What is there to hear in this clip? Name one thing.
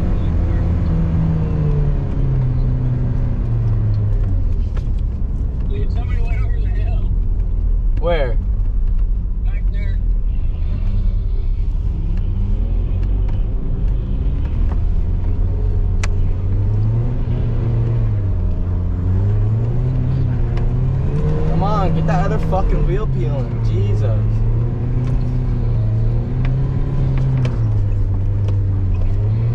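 A car engine hums steadily and rises and falls in pitch as it speeds up and slows down.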